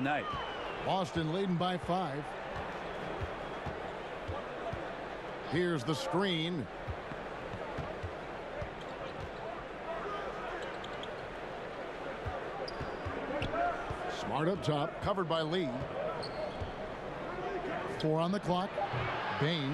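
A crowd murmurs steadily in a large arena.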